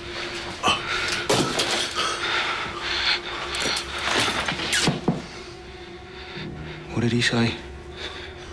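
A second man speaks urgently, close by.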